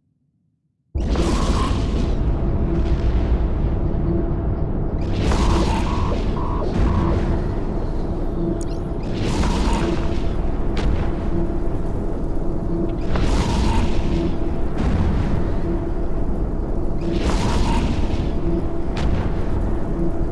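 A spaceship engine rumbles deeply and steadily.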